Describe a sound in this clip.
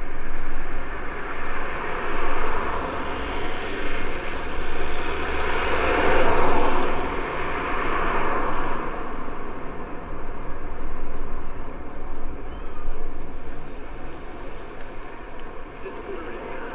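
Wind rushes past steadily, rising and falling.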